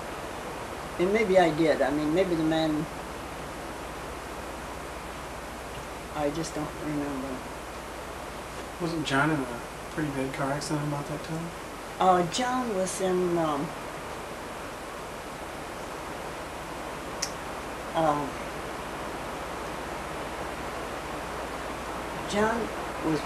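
An elderly woman speaks calmly and slowly, close by, with pauses.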